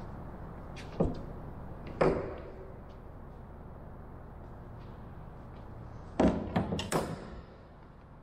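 Tools knock and clatter against wood.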